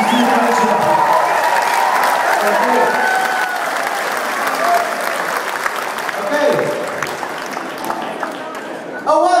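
A large crowd cheers and chatters close by.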